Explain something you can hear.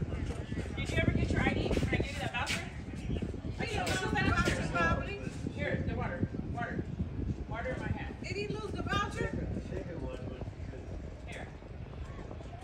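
A man talks calmly with an elderly woman close by, outdoors.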